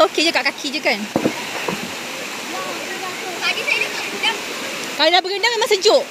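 Young girls talk and call out excitedly close by.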